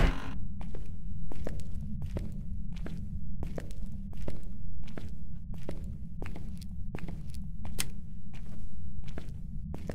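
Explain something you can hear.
Footsteps thud slowly and evenly on a hard floor.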